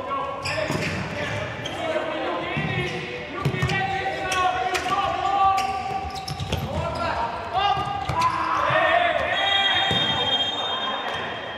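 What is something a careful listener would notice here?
A ball is kicked with sharp thuds in an echoing indoor hall.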